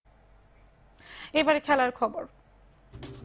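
A young woman reads out steadily into a microphone.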